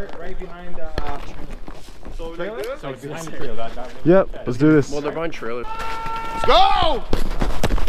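Several men talk and call out to one another outdoors.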